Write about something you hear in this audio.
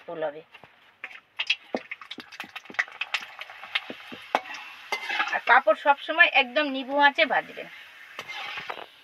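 Hot oil sizzles as a papad fries in a wok.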